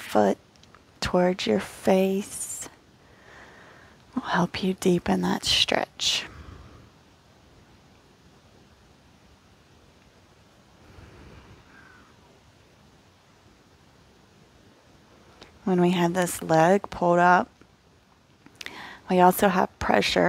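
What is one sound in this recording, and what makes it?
A woman speaks calmly and slowly, close to a microphone, with long pauses.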